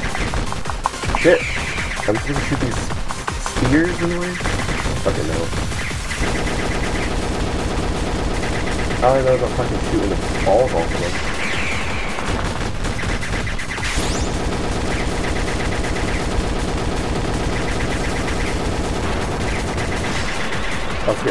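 Rapid electronic shots rattle continuously.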